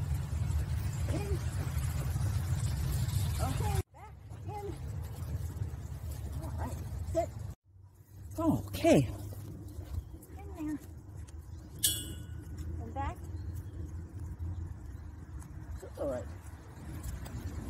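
A woman talks encouragingly to a dog nearby.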